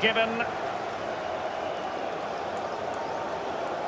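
A football is struck hard with a thump.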